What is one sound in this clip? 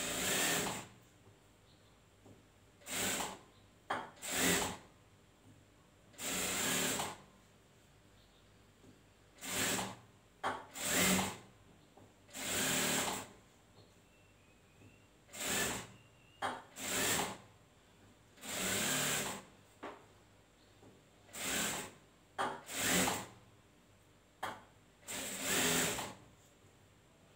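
A sewing machine runs in short bursts, starting and stopping.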